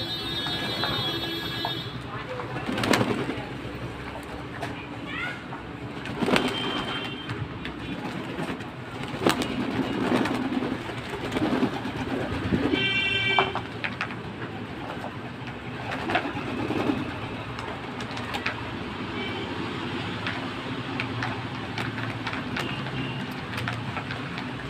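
Pigeons flap their wings in sudden bursts close by.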